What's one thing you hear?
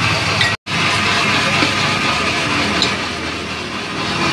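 A spoon clinks against a glass jar.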